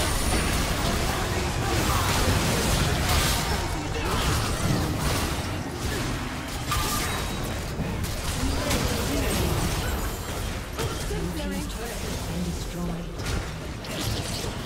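Magic spells crackle and burst in a busy battle.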